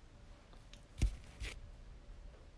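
A glass dropper taps against a small bottle.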